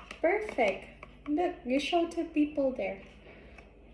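A spoon scrapes inside a plastic cup.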